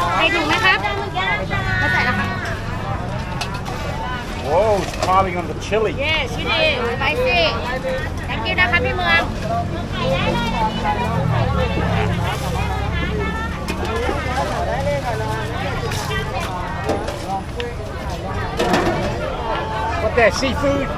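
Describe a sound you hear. A woman speaks casually and close by.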